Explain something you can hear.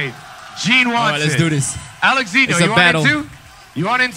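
A man claps his hands repeatedly.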